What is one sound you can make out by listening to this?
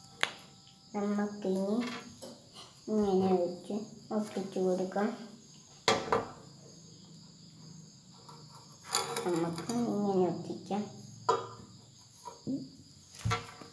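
A young boy speaks calmly close by.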